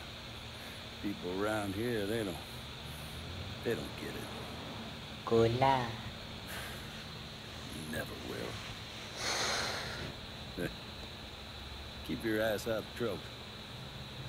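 An older man speaks with animation, close by.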